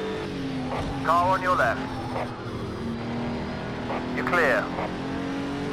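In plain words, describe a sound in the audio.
Car tyres squeal briefly through corners.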